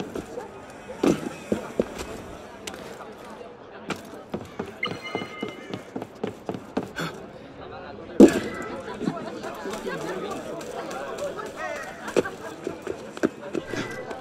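Boots thud heavily on landing.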